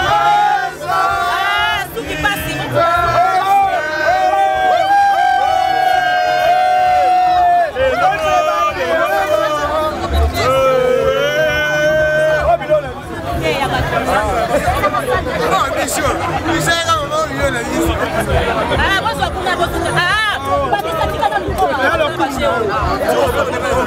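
A crowd of men and women chatter and cheer loudly close by.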